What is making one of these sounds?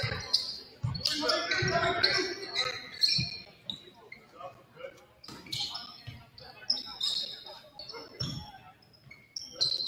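Sneakers squeak sharply on a wooden floor in an echoing hall.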